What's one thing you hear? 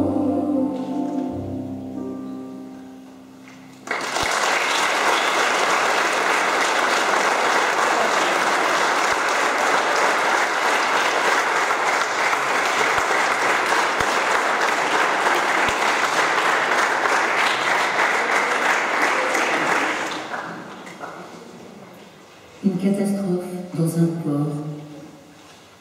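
A children's choir sings in an echoing hall.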